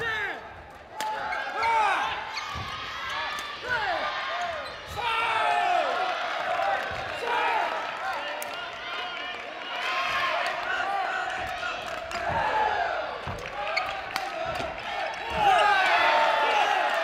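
A racket smacks a shuttlecock.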